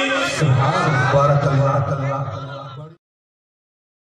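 A man sings a devotional chant loudly through a loudspeaker.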